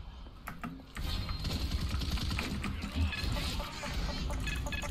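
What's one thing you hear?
A rapid-firing gun shoots in quick bursts.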